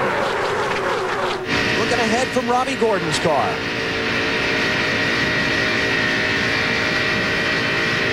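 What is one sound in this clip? Racing car engines roar loudly at high speed close by.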